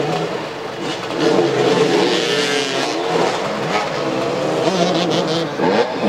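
Several motorcycle engines roar and rev up and down.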